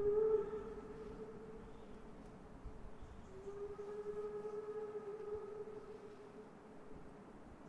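A steam locomotive blows its whistle.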